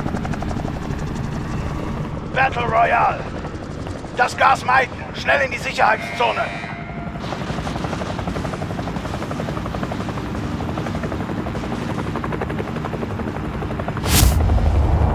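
Helicopter rotors thump steadily overhead.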